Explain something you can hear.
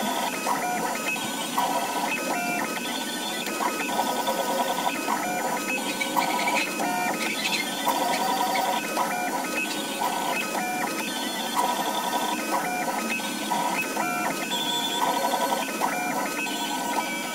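Stepper motors of a 3D printer whine and buzz in quickly shifting tones.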